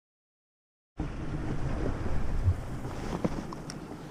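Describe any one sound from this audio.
A fishing reel clicks and whirs as its line is wound in.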